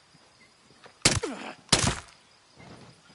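Two loud gunshots crack from a rifle close by.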